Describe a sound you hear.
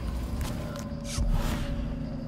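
A magic power crackles and whooshes as it is cast.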